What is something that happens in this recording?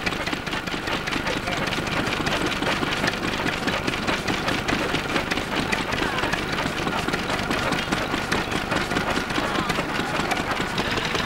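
Old stationary engines chug and tick steadily, close by.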